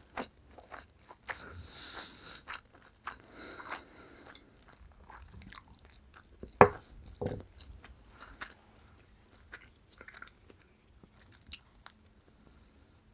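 A young woman chews food with wet mouth sounds close to a microphone.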